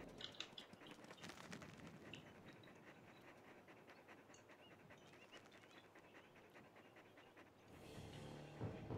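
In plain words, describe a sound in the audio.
Paws thud and rustle through grass.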